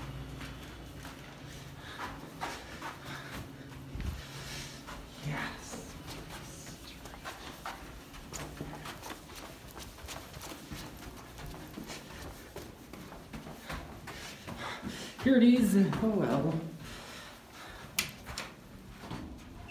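Footsteps thud softly on carpet.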